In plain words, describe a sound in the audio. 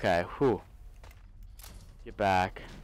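A weapon clicks and clanks as it is reloaded.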